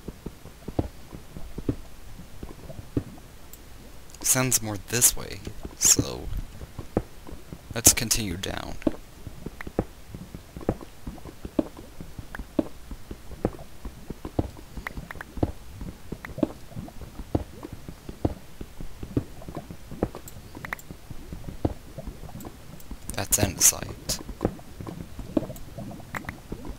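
Stone blocks crack and break with quick, repeated knocks.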